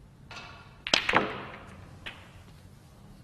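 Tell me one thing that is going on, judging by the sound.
Snooker balls clack together as the pack breaks apart.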